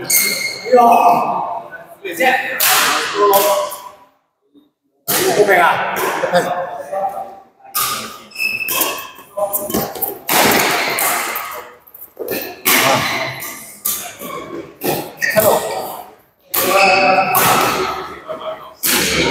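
Men talk and call out in a large echoing hall.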